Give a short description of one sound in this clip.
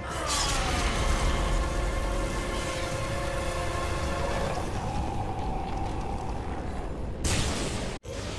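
Fire roars and crackles loudly.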